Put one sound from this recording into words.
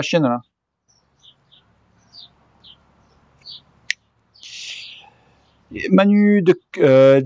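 A man speaks calmly and close by, with short pauses.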